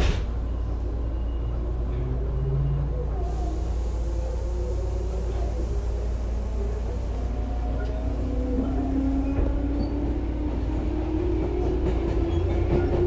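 Train wheels squeal on the rails with a slowly rising whine.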